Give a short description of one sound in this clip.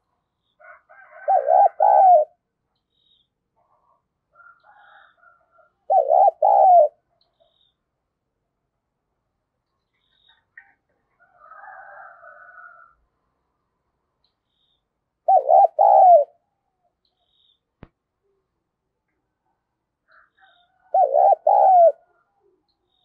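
A dove coos in short, deep, repeated bursts close by.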